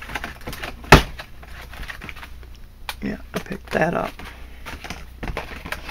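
A plastic package crinkles and rustles in a hand.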